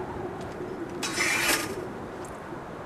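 A blade scrapes as a sword is drawn.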